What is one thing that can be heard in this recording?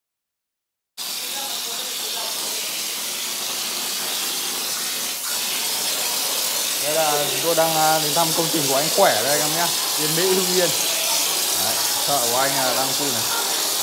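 A plaster spray gun hisses loudly and steadily as mortar sprays onto a wall.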